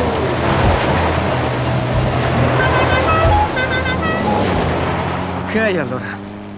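Gravel and dirt spray from spinning tyres.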